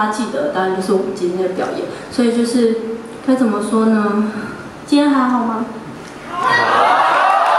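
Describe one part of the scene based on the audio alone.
A young man speaks calmly into a microphone over loudspeakers in an echoing hall.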